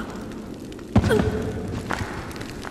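A body thuds onto a hard stone floor.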